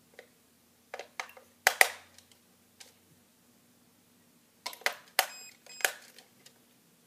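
Plastic parts click and knock as they are handled close by.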